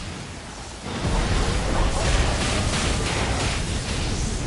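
Magic blasts crackle and burst loudly in a fight.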